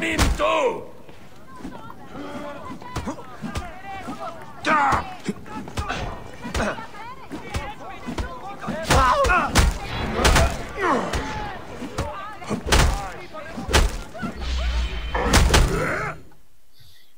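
Blows land and weapons clash in a fight.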